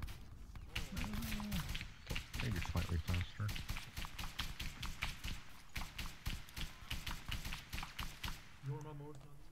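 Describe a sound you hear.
Footsteps rustle quickly through dry grass and leaves.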